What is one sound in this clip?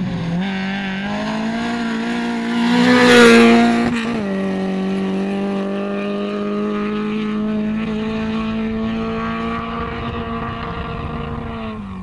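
Gravel sprays and crunches under a car's tyres.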